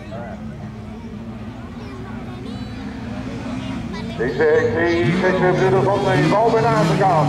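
Car engines roar and rev in the distance.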